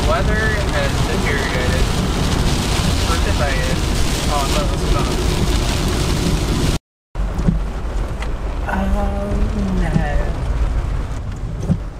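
Windshield wipers swish across the glass.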